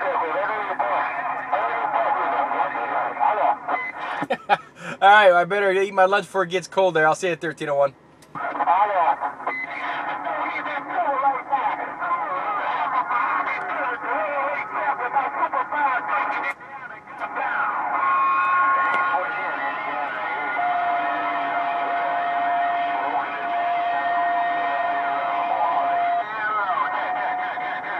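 A CB radio crackles over its loudspeaker with static and warbling, distorted transmissions.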